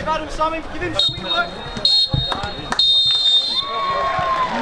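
A referee's whistle blows several sharp blasts.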